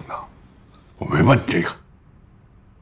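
A middle-aged man speaks in a low voice.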